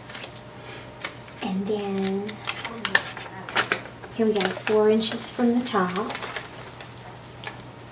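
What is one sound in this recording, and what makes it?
Paper rustles and crinkles as a folded map is handled.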